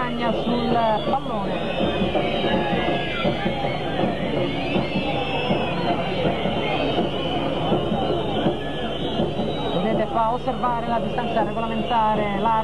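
A large crowd chants and sings loudly in an open stadium.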